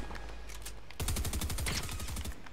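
A video game assault rifle fires in rapid bursts.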